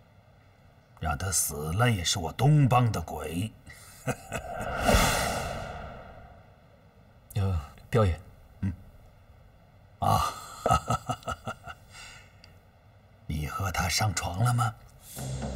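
An older man speaks slowly and with amusement, close by.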